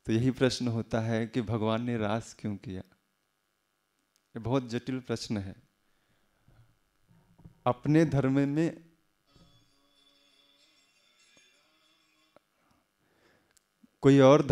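A man speaks calmly into a close microphone, in bursts with pauses.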